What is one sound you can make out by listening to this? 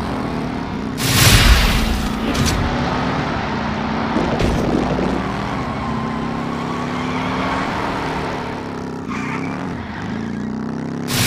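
A toy race car's engine hums steadily throughout.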